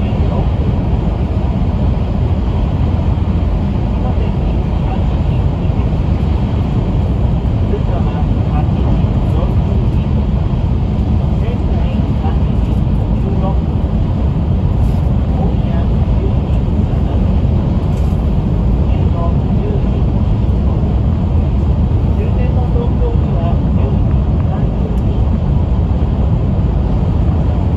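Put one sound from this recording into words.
A high-speed train rumbles steadily along the track, heard from inside the carriage.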